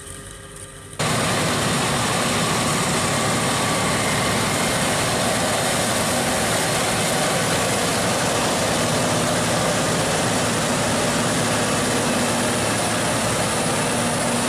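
A large harvester engine roars steadily as it drives past.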